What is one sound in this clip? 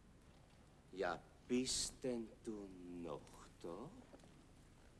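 A man speaks firmly nearby.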